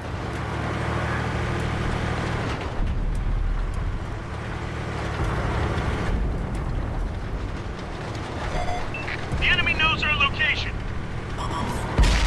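A tank engine rumbles steadily while the tank drives.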